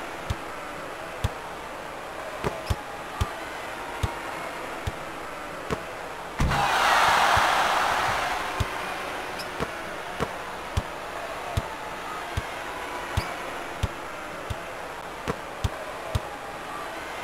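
A basketball bounces repeatedly on a hardwood court.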